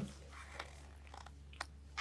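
A small dog licks its paw.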